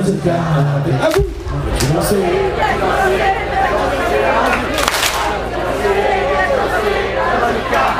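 A live band plays loud music through big loudspeakers.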